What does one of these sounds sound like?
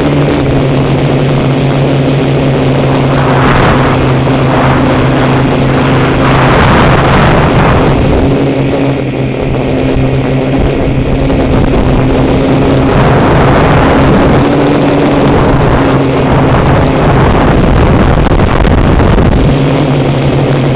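Drone propellers whine steadily close by.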